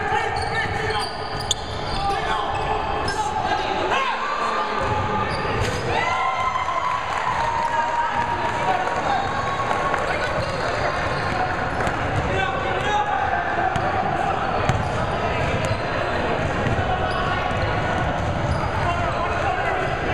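A crowd of spectators cheers and chatters.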